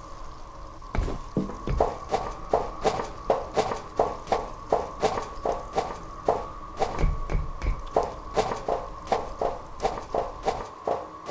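Footsteps clang rhythmically on metal ladder rungs and grating.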